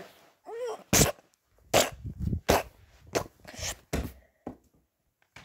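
Soft toys rustle and bump as hands handle them.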